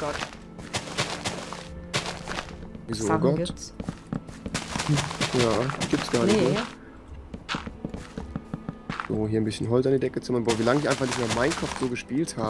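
Dirt crunches in short bursts as blocks are dug out.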